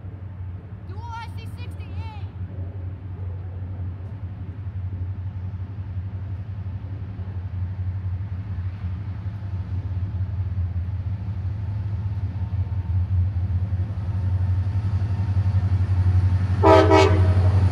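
A train horn blasts twice, once far off and once close by.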